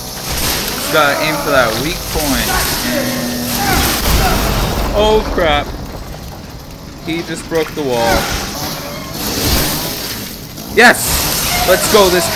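A chainsaw revs and roars up close.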